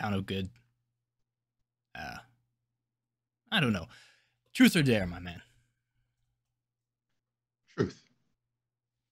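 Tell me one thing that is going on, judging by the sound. A man speaks with animation over an online call, in short bursts.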